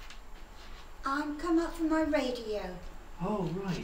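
An elderly woman speaks warmly nearby.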